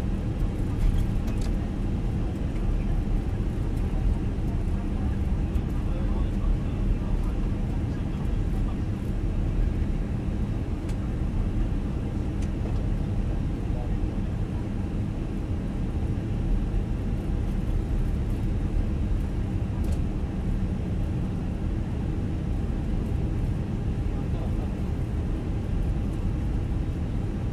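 A jet airliner's engines rumble steadily as the plane taxis.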